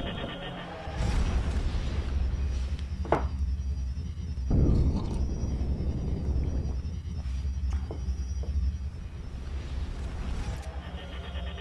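A spaceship engine roars in a deep, steady rumble.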